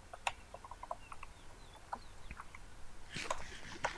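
Crunchy chewing sounds of eating repeat quickly.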